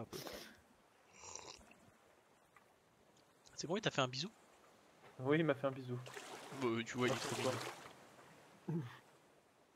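Water sloshes and splashes gently.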